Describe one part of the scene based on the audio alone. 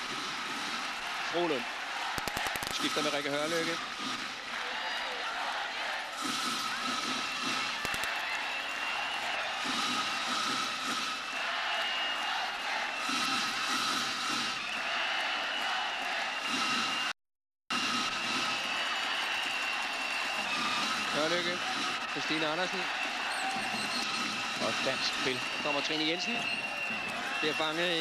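A large crowd roars and chants steadily in an echoing arena.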